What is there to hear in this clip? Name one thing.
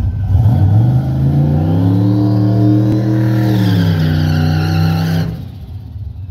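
Tyres screech as they spin on the track.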